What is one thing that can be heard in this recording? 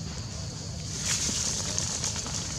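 Macaques scamper over dry leaves.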